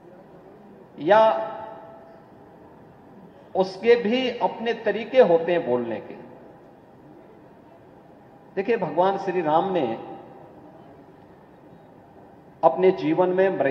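A middle-aged man speaks with emphasis through a microphone, with long pauses.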